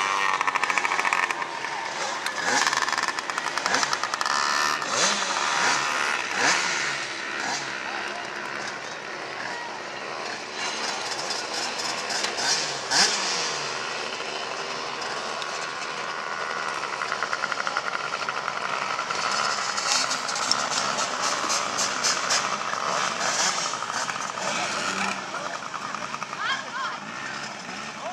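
Small motorcycle engines buzz and rev around a dirt track.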